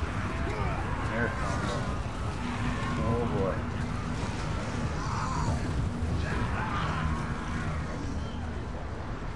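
Warriors roar in a noisy battle.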